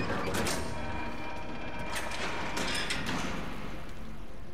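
A metal panel clanks and rattles as it is worked open.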